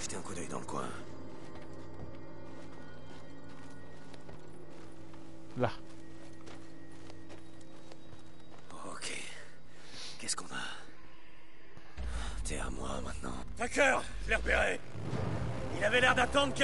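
A young man talks casually into a headset microphone.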